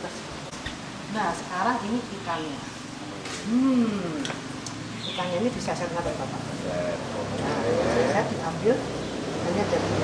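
An elderly woman talks calmly close by.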